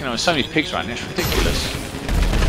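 A rocket launcher fires with a whoosh.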